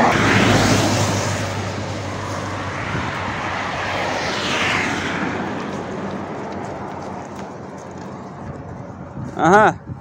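Traffic rushes past on a road.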